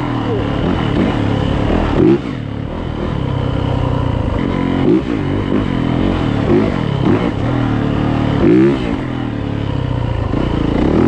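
Tyres crunch over a bumpy dirt trail.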